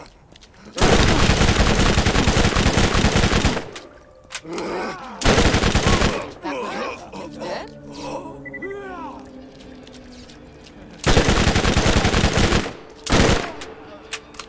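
A rapid-fire gun shoots loud, fast bursts close by.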